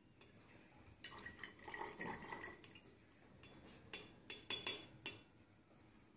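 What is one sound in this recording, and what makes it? Glassware clinks lightly.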